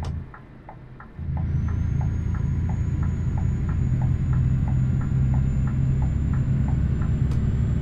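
A turn signal ticks rapidly.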